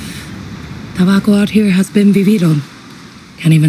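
A man speaks in a low, gruff voice, close up.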